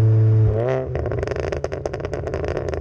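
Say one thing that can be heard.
A car exhaust pops and crackles loudly.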